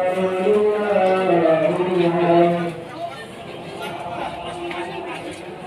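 A crowd of men and boys murmurs and talks outdoors.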